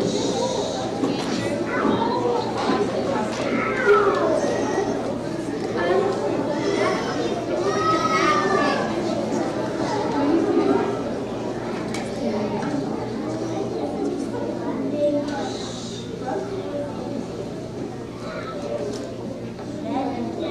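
A choir of children sings together in a large echoing hall.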